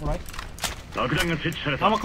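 A rifle fires a quick burst of shots.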